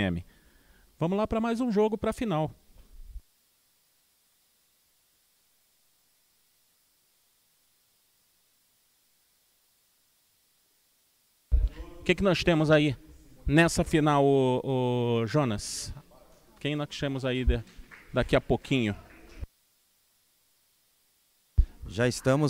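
A man speaks into a microphone, in short bursts with long pauses.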